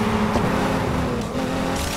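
Metal scrapes against a barrier with a grinding screech.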